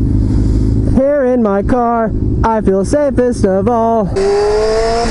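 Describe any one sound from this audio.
A motorcycle engine revs up and down in quick bursts through gear changes.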